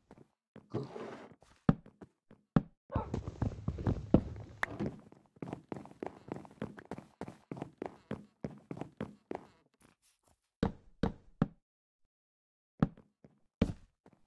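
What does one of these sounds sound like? Wooden blocks are placed with soft knocks.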